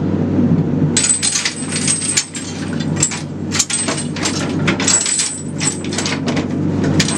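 Metal chains and a cage rattle and clank.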